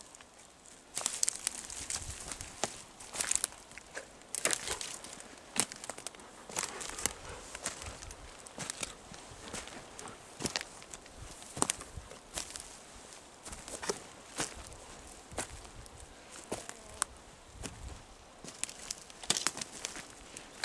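Footsteps crunch and rustle through dry leaves and twigs.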